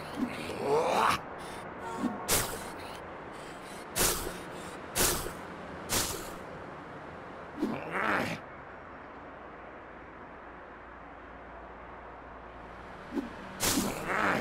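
A web line swishes as a toy figure swings through the air.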